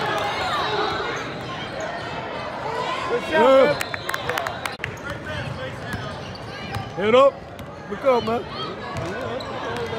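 A basketball bounces on a hardwood floor in an echoing gym.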